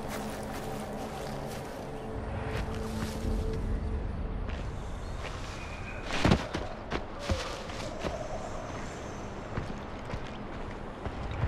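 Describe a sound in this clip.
Leaves and grass rustle as someone pushes through undergrowth.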